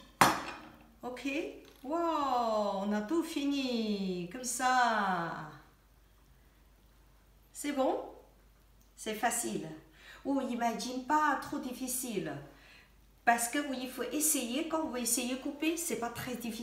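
A middle-aged woman speaks with animation close by.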